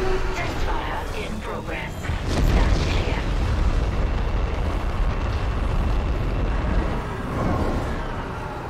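A large engine roars with a deep, steady rumble.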